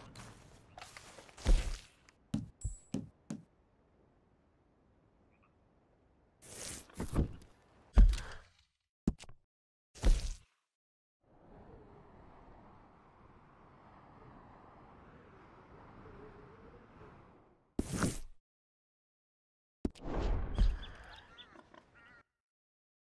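Game menu sounds click and whoosh as menus open and close.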